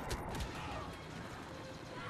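A small blast crackles with sparks.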